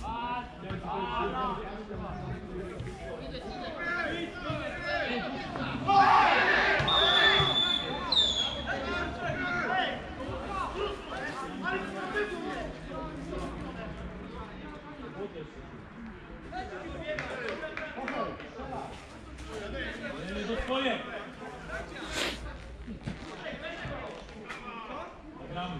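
Men shout to each other across an open field, heard from a distance.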